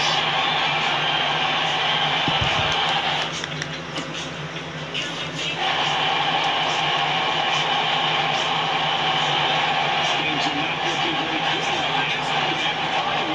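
A crowd roars steadily through a television speaker.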